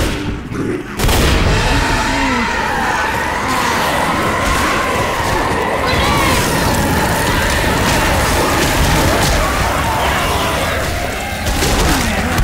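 A creature snarls and growls up close.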